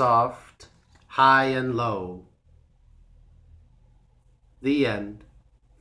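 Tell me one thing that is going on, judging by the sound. A man speaks calmly and close up, in short phrases with pauses.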